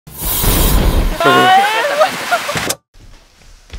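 A gas flame roars in a loud burst outdoors.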